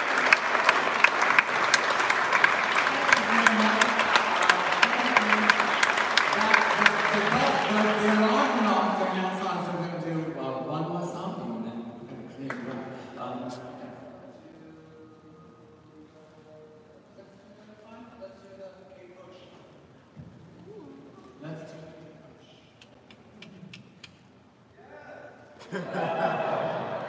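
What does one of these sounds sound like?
A woman sings through loudspeakers in a large echoing hall.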